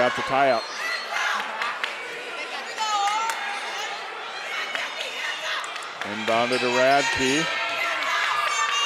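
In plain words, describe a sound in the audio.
A large crowd murmurs and cheers in an echoing gym.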